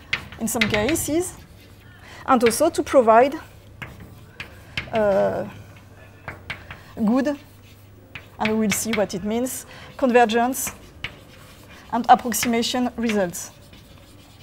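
A woman speaks calmly through a microphone, in short phrases with pauses.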